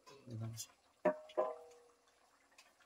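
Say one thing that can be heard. A metal pot clanks and rings briefly.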